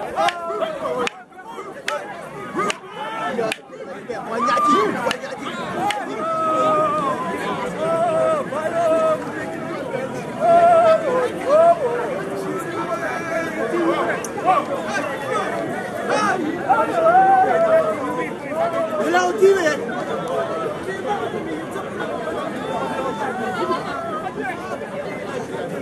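A large outdoor crowd shouts and cheers with excitement.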